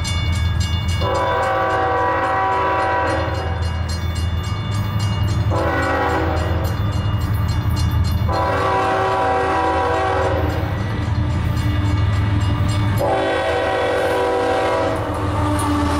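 A train horn blares loudly in long repeated blasts.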